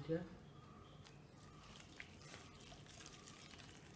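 Water trickles from a pot onto rice.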